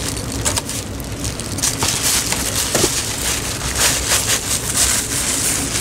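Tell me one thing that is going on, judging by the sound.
A cardboard box scrapes and thumps as it is handled.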